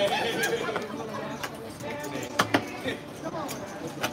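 Casino chips click softly onto a table.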